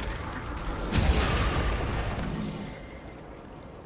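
A loud explosion bursts and rumbles, then fades.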